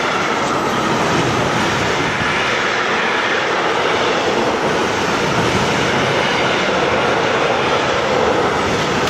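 A long freight train rumbles past close by with a steady roar.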